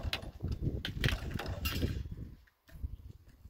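A plastic crate rattles and clatters as it is handled.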